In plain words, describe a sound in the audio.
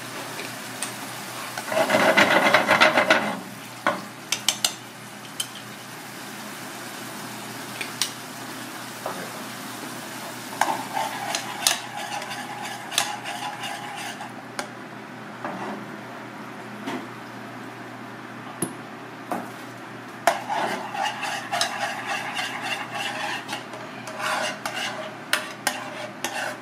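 Sauce bubbles and sizzles in a hot pan.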